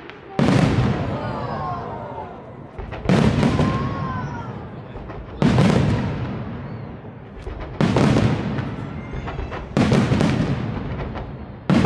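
Firework rockets whistle as they shoot up.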